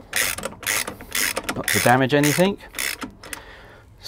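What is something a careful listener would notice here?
A ratchet wrench clicks as it turns a wheel nut.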